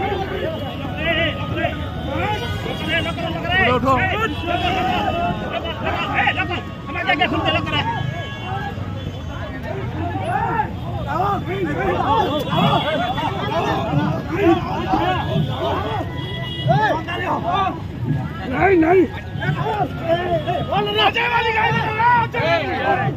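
A crowd of men shouts and argues loudly close by, outdoors.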